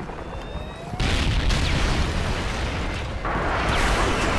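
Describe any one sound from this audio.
An explosion booms and debris rumbles.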